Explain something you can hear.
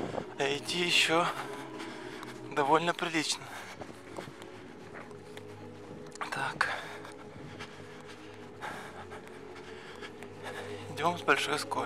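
Footsteps crunch slowly on a muddy dirt road.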